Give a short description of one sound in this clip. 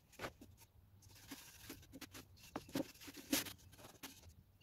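A cloth rag rubs and swishes across wood.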